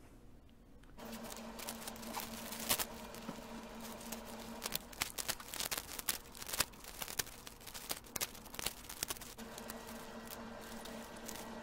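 Stiff leaves rustle and tear as they are pulled from a pineapple top.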